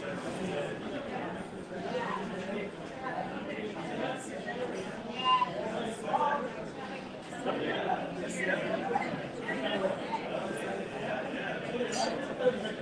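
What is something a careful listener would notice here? Several men and women chat and talk over one another, heard from across a room.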